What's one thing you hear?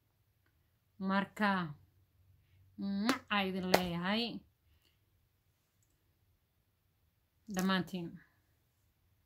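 A young woman speaks calmly and clearly close to a microphone, in short bursts with pauses.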